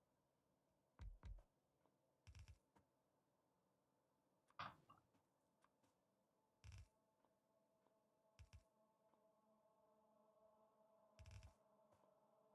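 Short, dull thuds sound now and then as buildings are placed.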